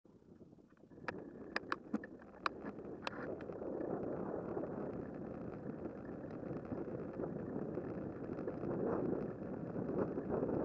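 Wind rushes past a moving bicycle and grows stronger.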